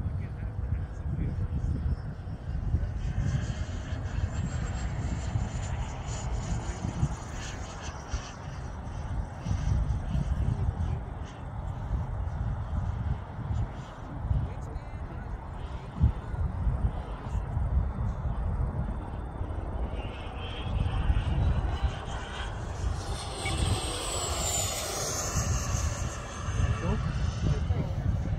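A small model jet engine whines overhead, rising and falling in pitch.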